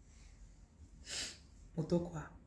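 A young woman breathes out sharply, close by.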